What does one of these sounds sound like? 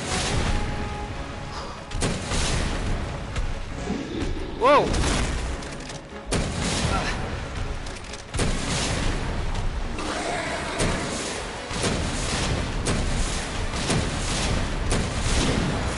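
Explosions boom loudly and rumble.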